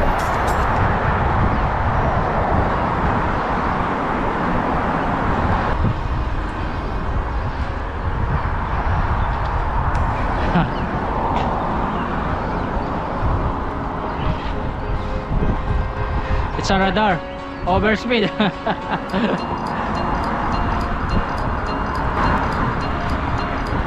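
Cars drive by on a nearby road.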